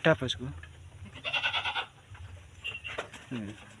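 Hooves scuffle and thump on the ground as a goat rears up.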